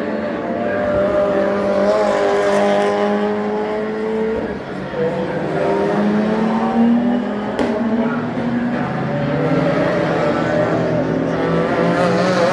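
Racing car engines roar as cars speed past outdoors, their pitch rising and falling.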